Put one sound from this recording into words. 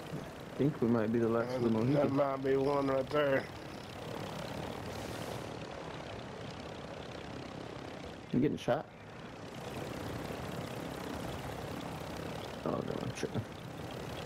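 A man talks with animation through a headset microphone.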